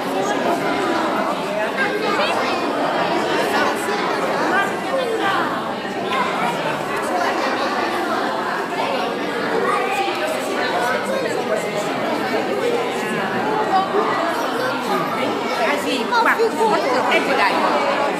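A crowd of men and women chatter all at once, close by, in an echoing hall.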